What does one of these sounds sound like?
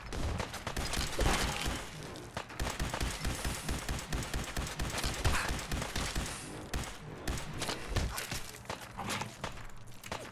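A large creature screeches and snarls nearby.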